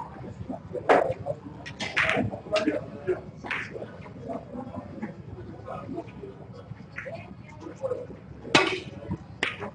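Snooker balls knock together with sharp clicks.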